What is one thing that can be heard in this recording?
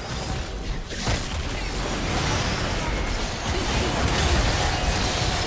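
Magic spells burst and crackle in a busy fight.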